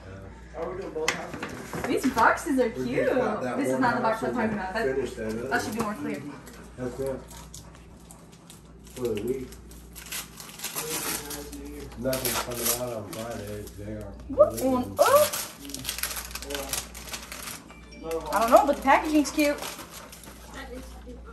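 Paper and tissue rustle as gifts are unwrapped.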